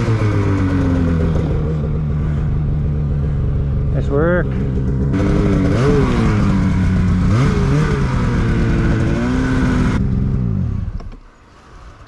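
A snowmobile engine roars loudly up close, revving up and down.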